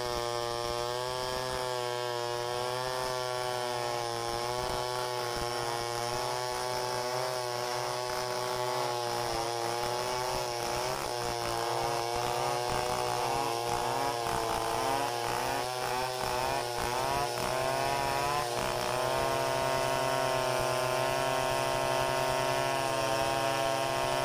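A chainsaw roars steadily, cutting through wood.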